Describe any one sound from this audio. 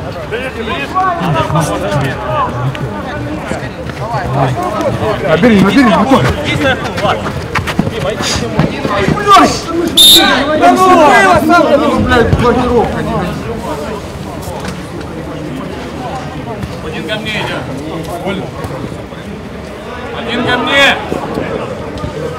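Men shout and call out across an open outdoor pitch.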